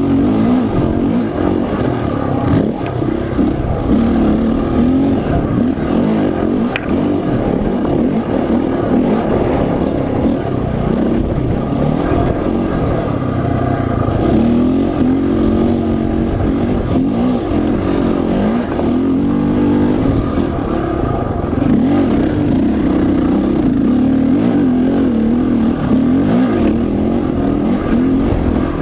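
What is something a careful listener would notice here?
Tyres crunch over loose dirt and gravel.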